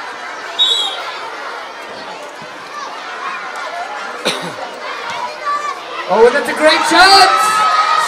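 A crowd of children cheers and yells in the distance.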